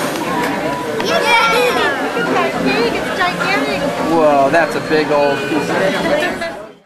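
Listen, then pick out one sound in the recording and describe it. A young boy laughs and talks excitedly close by.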